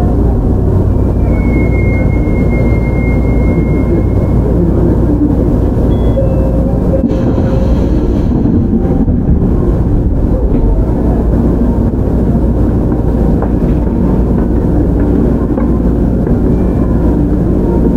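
A train rumbles along the tracks with a steady, heavy roar.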